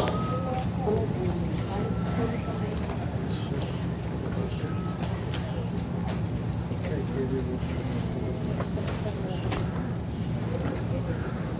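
A crowd of men and women chatter and murmur in a large room.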